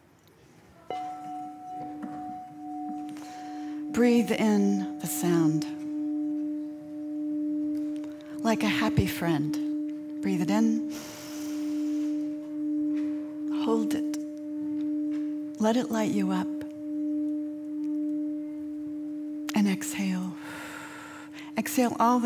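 A singing bowl rings with a steady, slowly pulsing hum, heard through an online call.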